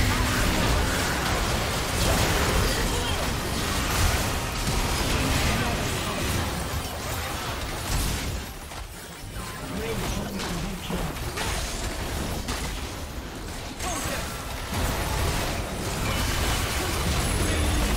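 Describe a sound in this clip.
Spell blasts and magical impacts crackle and boom in a fast fight.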